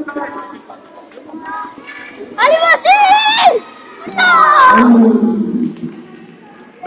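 Children shout excitedly in a large echoing hall.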